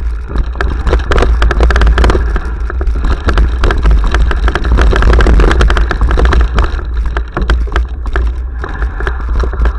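Bicycle tyres crunch and rattle over a rough dirt trail.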